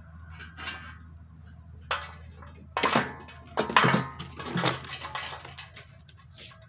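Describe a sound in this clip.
A thin metal cable rattles and clicks against a mower handle.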